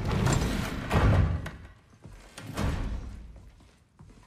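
Heavy footsteps thud on a hard floor.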